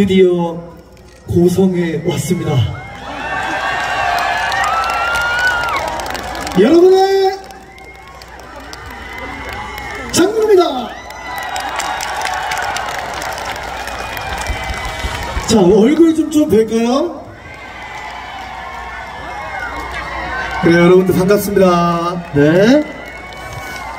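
A man sings loudly into a microphone, heard over loudspeakers.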